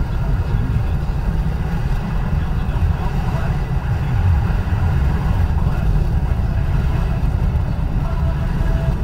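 Tyres rumble on a highway.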